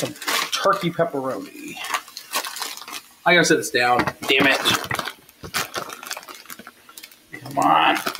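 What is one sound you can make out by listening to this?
A plastic package crinkles as it is handled.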